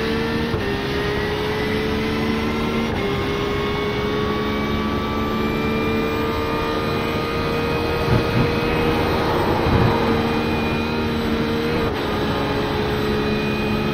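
A racing car engine roars at high revs, shifting up through the gears.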